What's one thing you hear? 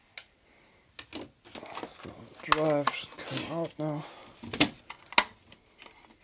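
A plastic case clatters and knocks as it is lifted and set down.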